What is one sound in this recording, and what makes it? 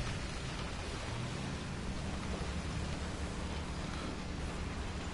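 A heavy tank engine rumbles steadily.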